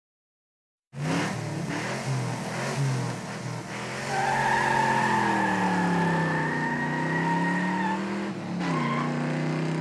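An engine idles and revs up and down.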